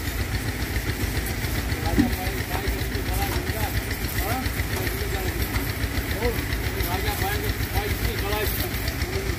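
Water sprays from a hose and splashes against a truck.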